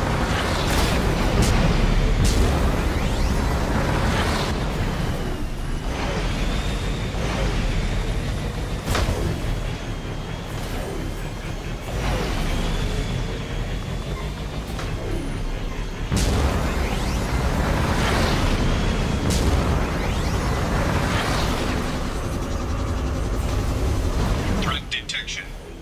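A hovering vehicle's engine roars steadily as it skims over the ground.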